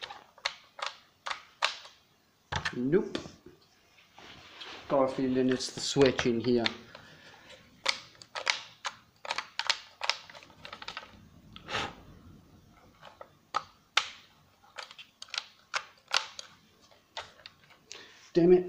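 A plastic power tool knocks and rattles as it is turned over by hand.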